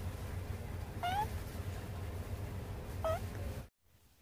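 A kitten meows twice.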